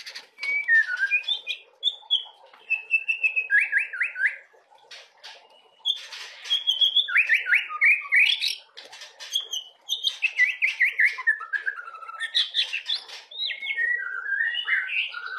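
A songbird sings loud, varied whistling phrases with quick trills close by.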